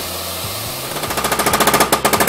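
A hydraulic breaker hammers rapidly on rock.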